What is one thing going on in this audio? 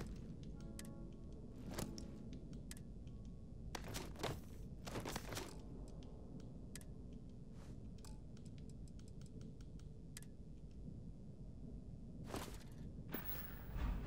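Soft menu clicks and ticks sound again and again as items are scrolled through.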